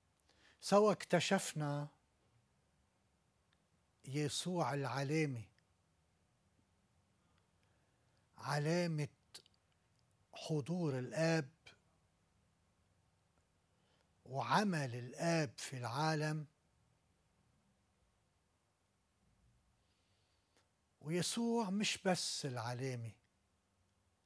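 An elderly man speaks calmly and close by, in short phrases with pauses.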